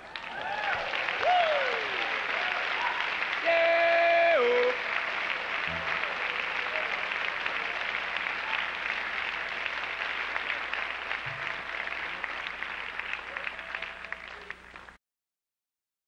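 An acoustic guitar is strummed and plucked on stage.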